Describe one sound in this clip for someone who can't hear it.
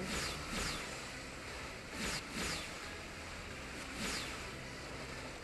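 Rushing water whooshes in short bursts.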